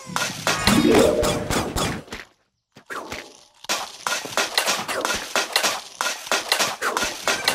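Cartoon plants shoot with quick soft pops.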